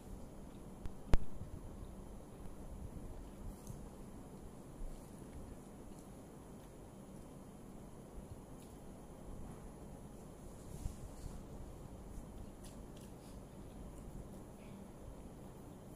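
Fingers tap and scrape food on a plate.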